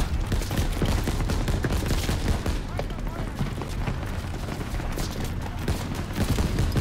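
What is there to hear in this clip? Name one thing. A heavy machine gun fires in rapid bursts close by.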